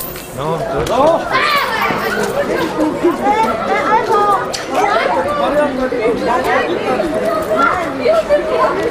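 Several women and men talk and exclaim excitedly close by, outdoors.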